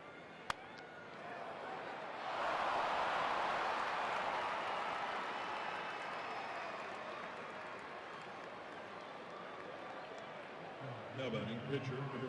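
A large stadium crowd cheers loudly, then settles.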